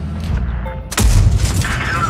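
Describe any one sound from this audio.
A tank gun fires with a sharp boom.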